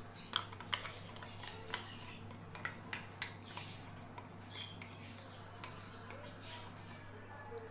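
A spoon scrapes and taps against a metal jar.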